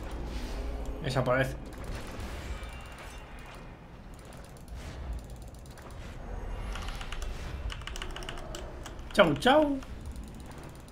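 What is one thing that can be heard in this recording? Game spell effects whoosh and chime.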